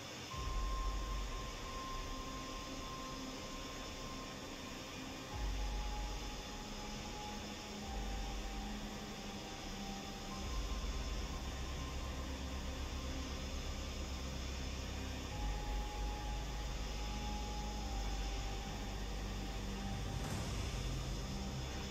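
Jet engines roar steadily.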